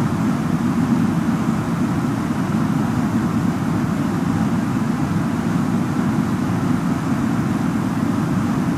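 A jet airliner's engines drone steadily, heard from inside.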